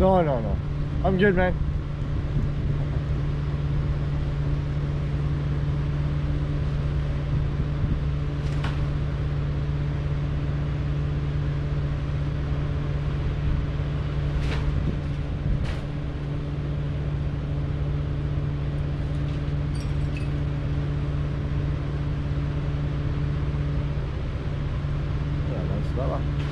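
A truck engine idles down the street with a steady low rumble.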